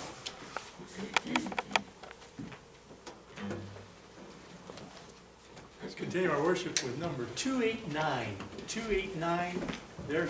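A guitar knocks and thumps as it is handled.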